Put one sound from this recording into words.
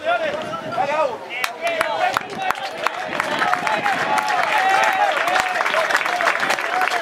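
A crowd of spectators cheers and shouts outdoors, growing louder.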